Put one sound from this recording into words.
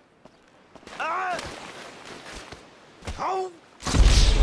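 A man yells as he falls.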